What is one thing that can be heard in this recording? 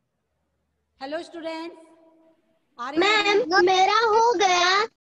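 A middle-aged woman speaks through a headset microphone in short phrases.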